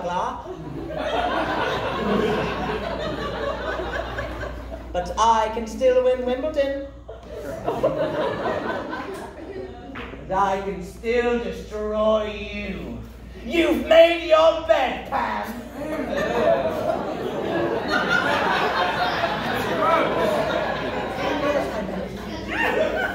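A crowd of performers sings together in chorus.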